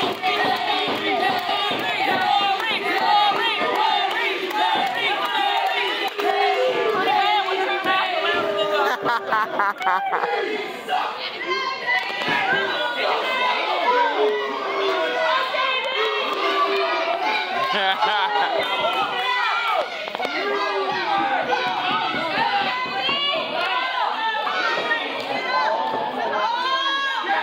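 A crowd of men and women cheers and shouts in a large echoing hall.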